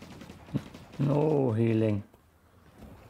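A young man speaks loudly into a close microphone.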